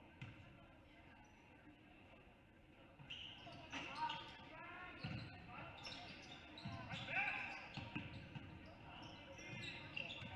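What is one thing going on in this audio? A basketball thumps as it is dribbled on a wooden floor.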